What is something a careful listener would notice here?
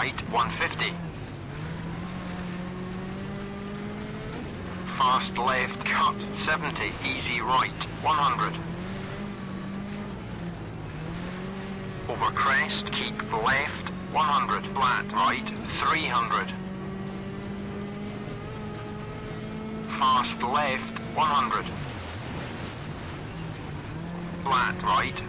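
A rally car engine drones steadily, its pitch rising and dropping with gear changes.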